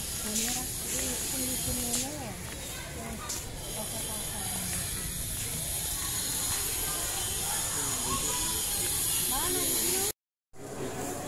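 A crowd of men and women chatters nearby outdoors.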